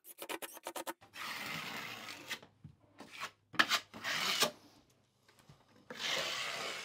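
A putty knife scrapes as sealant is spread.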